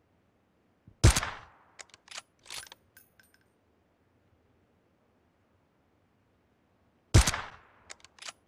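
A sniper rifle fires a single loud shot that echoes and fades.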